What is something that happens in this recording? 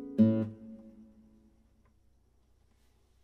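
A classical guitar strums a final chord that rings out and slowly fades.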